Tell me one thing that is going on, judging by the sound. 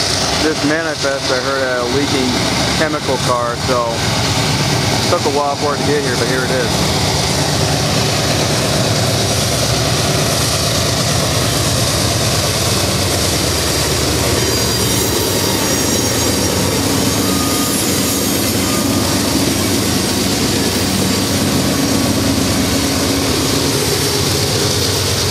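Diesel freight locomotives rumble as they pass close by.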